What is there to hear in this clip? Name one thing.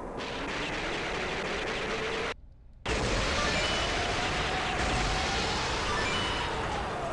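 Video game gunfire rattles rapidly.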